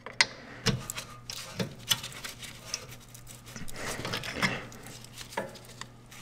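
A metal wrench clicks and scrapes against a bolt.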